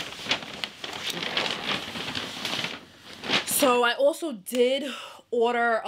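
A young woman speaks close to the microphone, first in a breathy whisper and then in a lively voice.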